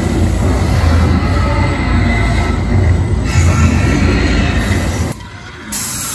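A large creature roars loudly with a deep growl.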